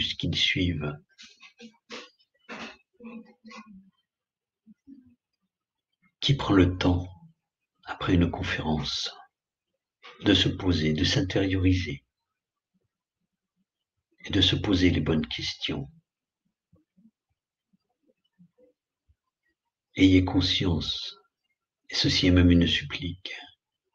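A middle-aged man speaks calmly over an online call, pausing often.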